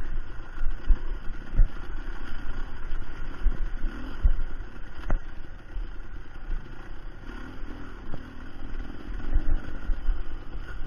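A dirt bike engine putters at low speed close by.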